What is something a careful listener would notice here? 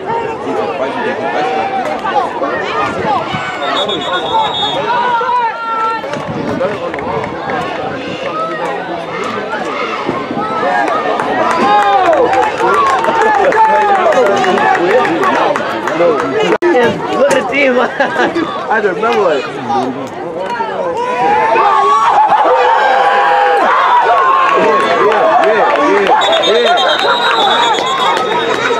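Young players shout and call out on the field.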